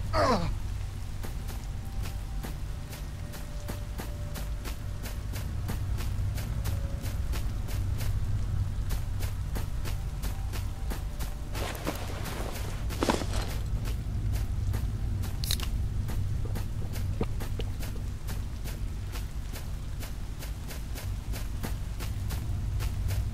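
Quick footsteps crunch over dry ground.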